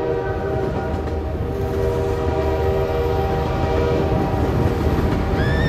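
A train horn blares loudly and steadily.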